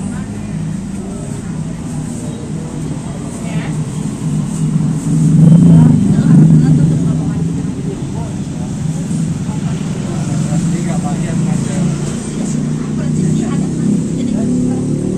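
A large fan whirs steadily with a low hum.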